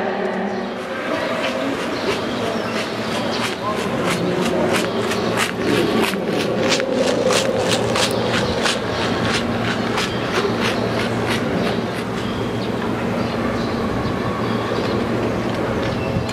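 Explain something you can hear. A racing wheelchair rolls quickly along a running track.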